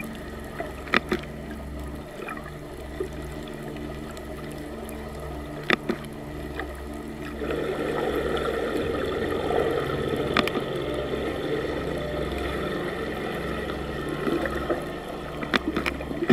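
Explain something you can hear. Dolphins click sharply now and then.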